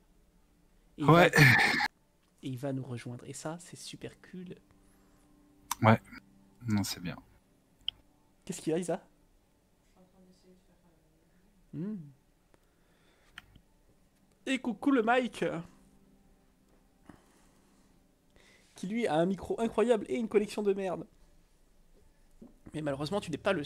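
A young man talks with animation close to a microphone, in short bursts between pauses.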